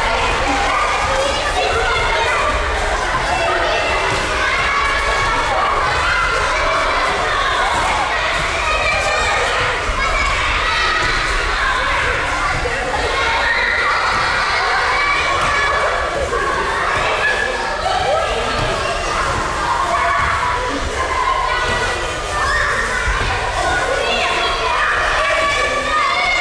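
Many children chatter and shout in a large echoing hall.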